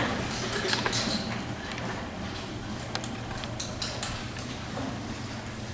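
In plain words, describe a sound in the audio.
Children speak from a distance, echoing in a large hall.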